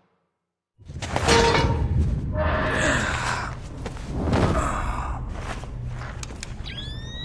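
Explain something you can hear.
A heavy metal grate scrapes and clanks as it is lifted.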